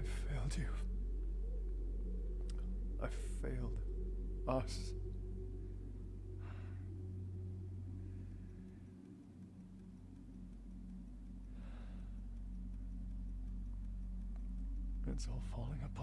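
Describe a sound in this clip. A man speaks quietly and gravely, close by.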